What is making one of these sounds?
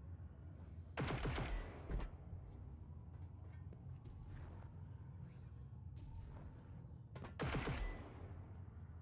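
A rifle fires short, loud bursts.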